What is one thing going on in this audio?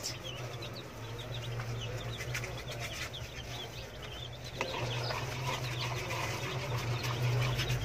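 Many chicks cheep constantly nearby.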